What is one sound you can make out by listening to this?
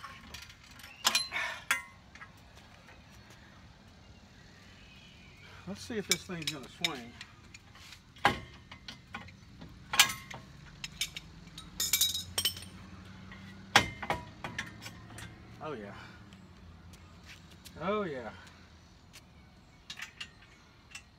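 Metal tools clank against a steel hitch rack.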